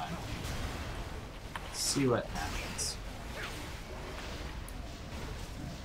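Weapons slash and strike with sharp magical whooshes.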